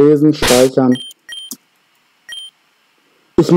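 Short electronic blips sound as a game menu opens and an option is chosen.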